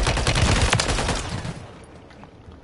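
Gunfire bursts loudly at close range.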